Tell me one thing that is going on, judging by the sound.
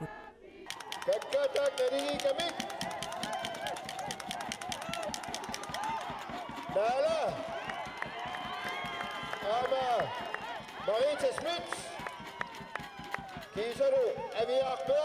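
A crowd of spectators outdoors cheers and shouts encouragement.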